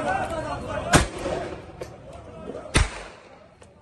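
A tear gas launcher fires.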